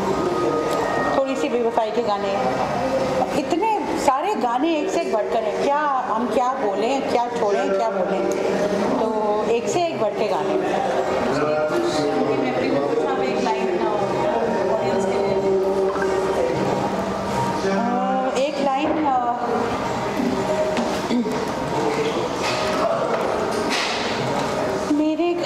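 A woman talks calmly into a nearby microphone.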